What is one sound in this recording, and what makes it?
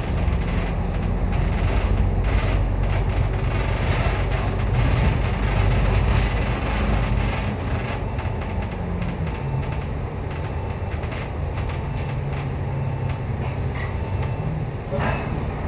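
A bus engine rumbles steadily while driving along a city street.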